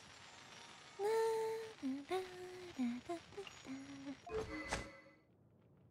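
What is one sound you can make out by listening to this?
Short menu tones chime and click.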